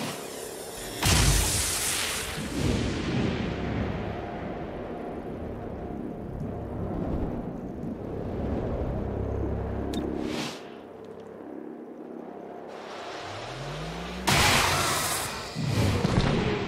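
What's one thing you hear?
A burst of gunfire rattles loudly.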